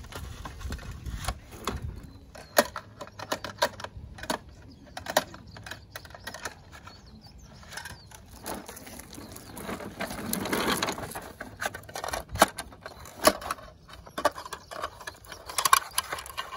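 Plastic toy truck parts click and clack as a hand moves them.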